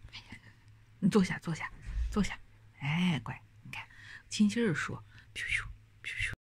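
A dog whines softly.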